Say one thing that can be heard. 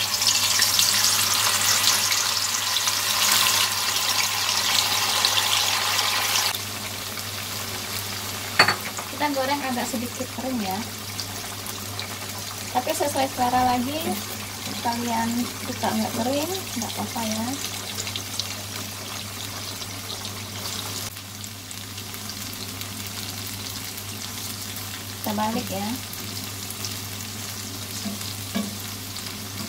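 Tofu fries in hot oil with a steady bubbling sizzle.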